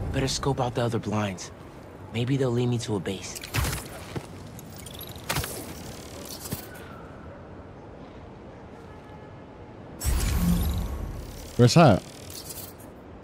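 A young man talks into a microphone with animation, close by.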